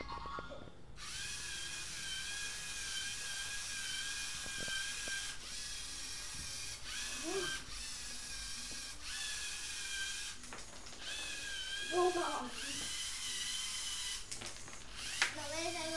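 A small robot's electric motors whir steadily as it drives across a wooden floor.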